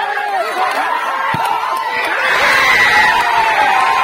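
A foot kicks a ball with a thud.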